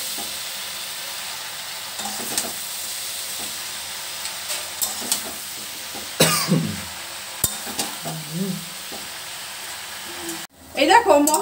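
A metal spatula scrapes and knocks against a metal pot.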